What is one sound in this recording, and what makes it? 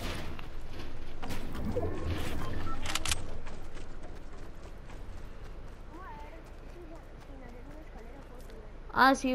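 Footsteps patter quickly over grass and wooden steps.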